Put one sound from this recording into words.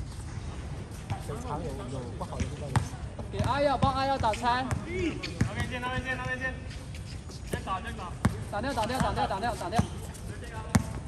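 Young men call out and talk nearby.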